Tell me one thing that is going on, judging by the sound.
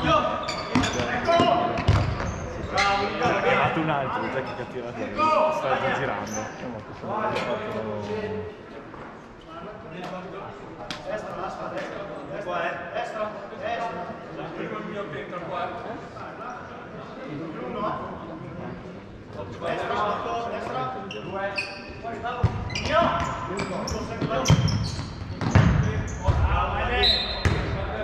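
Players shout and call out to each other in a large echoing hall.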